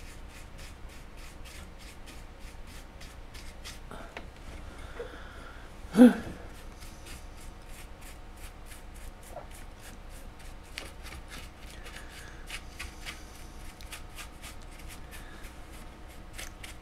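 An electric engraving pen buzzes and ticks rapidly against metal.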